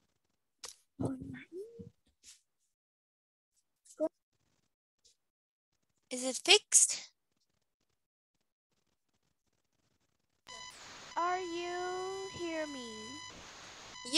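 A young girl answers over an online call.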